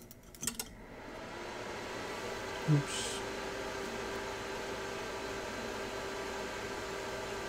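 Liquid fizzes softly and steadily.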